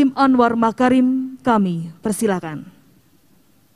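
A woman speaks through a microphone and loudspeaker, calling out in a drawn-out way.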